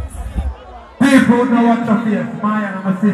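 A man shouts into a microphone over loudspeakers.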